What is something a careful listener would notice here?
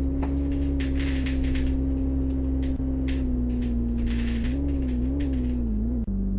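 A bus engine drones steadily and drops in pitch as the bus slows.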